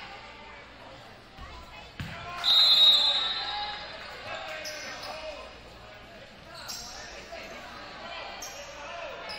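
A crowd murmurs and calls out.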